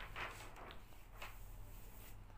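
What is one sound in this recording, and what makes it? A page of a book rustles as it turns.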